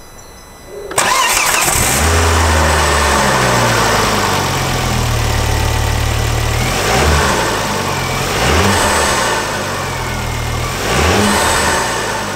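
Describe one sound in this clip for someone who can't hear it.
A car engine starts and idles with a steady low rumble.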